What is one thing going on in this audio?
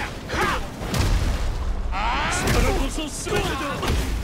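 Heavy punches land with loud thuds.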